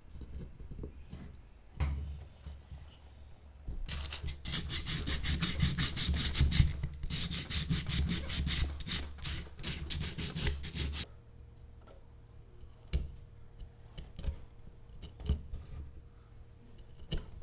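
A small knife scrapes and cuts into wood.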